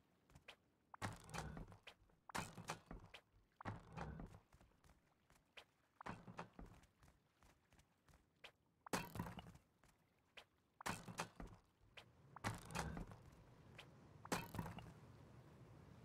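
A hammer strikes stone again and again, with crumbling bursts.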